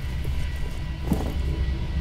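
Steam hisses from a pipe.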